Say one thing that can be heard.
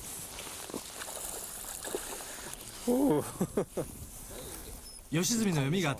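Water splashes as a fish is pulled from it.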